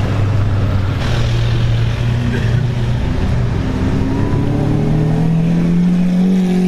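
A sports car engine growls loudly and rises in pitch as the car pulls away.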